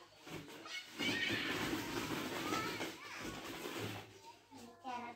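Plastic balls rattle and clatter as a small child plays among them.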